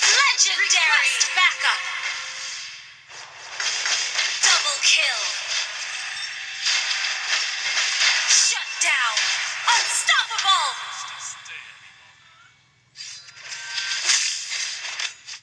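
Video game spell effects whoosh, crackle and clash in a fast battle.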